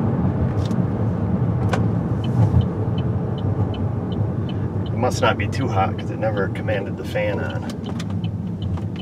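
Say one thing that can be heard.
A car drives along a road with a steady low rumble.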